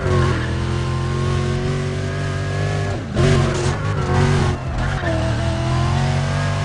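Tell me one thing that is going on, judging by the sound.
A sports car engine roars at high revs, rising and dropping in pitch as gears shift.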